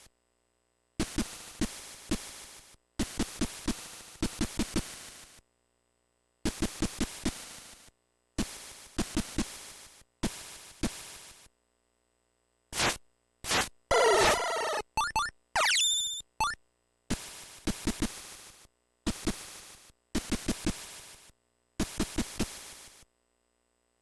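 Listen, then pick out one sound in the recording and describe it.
Quick electronic footstep beeps tick in short bursts.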